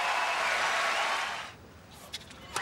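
Crowd applause fills a large arena.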